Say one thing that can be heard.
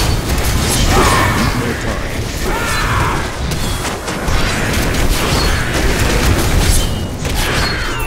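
Blows and impacts thud repeatedly in a battle.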